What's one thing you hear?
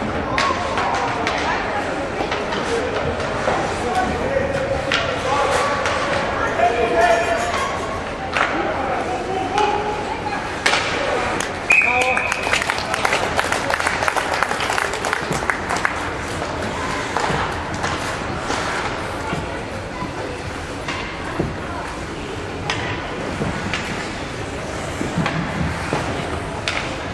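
Hockey sticks clatter and knock against the puck.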